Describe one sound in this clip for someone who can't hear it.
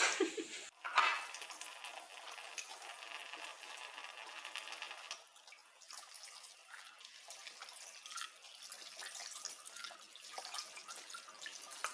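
Tap water runs steadily into a sink.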